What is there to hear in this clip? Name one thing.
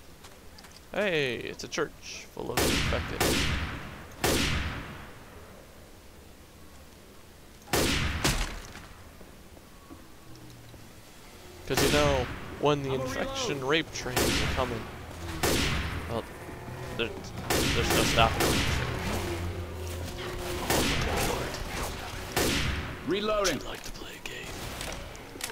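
Zombies snarl and shriek.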